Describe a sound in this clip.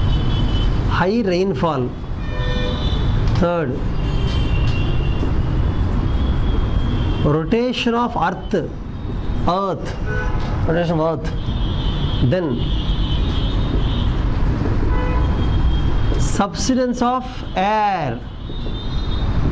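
A marker squeaks on a whiteboard in short strokes.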